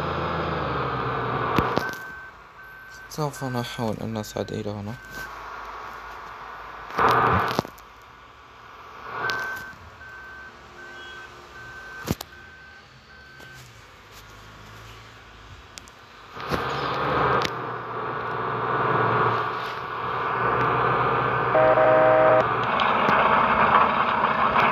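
A harvester engine rumbles steadily.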